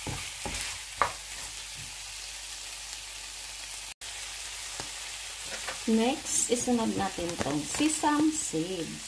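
Prawns sizzle in hot oil in a frying pan.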